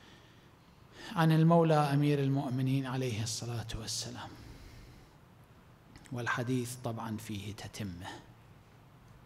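A middle-aged man speaks calmly into a microphone, in an echoing room.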